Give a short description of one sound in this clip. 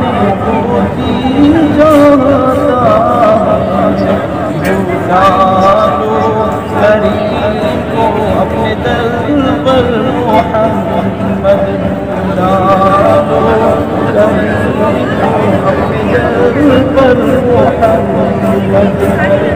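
A man chants melodically and slowly, close by.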